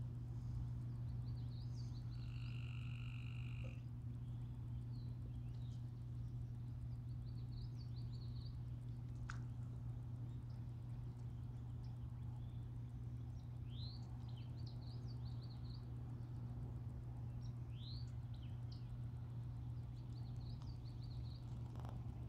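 A man blows short, high chirping calls through his cupped hands.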